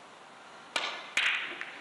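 A cue strikes a billiard ball.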